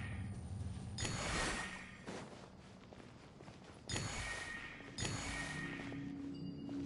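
Magic blasts burst with sharp, shimmering whooshes.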